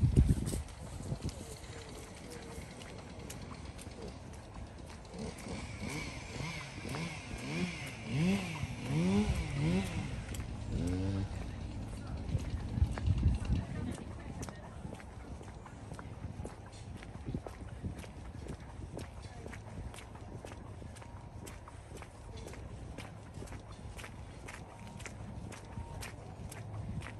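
Footsteps tap steadily on a hard path.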